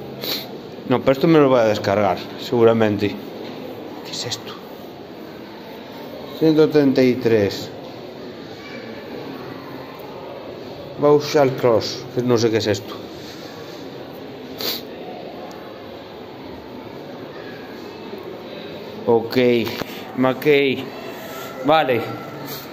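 A man speaks close by, in short bursts.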